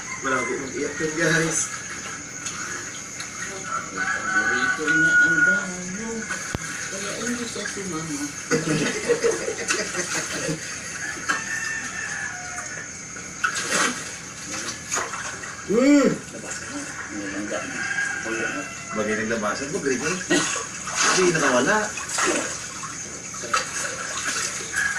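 Water splashes as people wade through it, heard through a television speaker.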